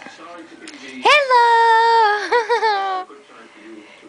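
A baby squeals in a long, high-pitched voice close by.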